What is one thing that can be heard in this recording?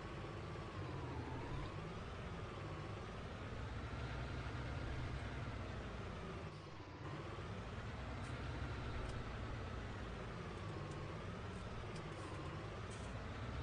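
A tractor engine hums steadily, rising and falling in pitch.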